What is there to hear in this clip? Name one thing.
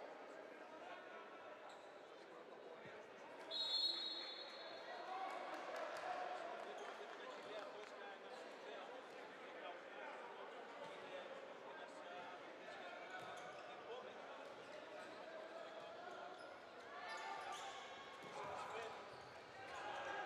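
Spectators chatter and call out in an echoing hall.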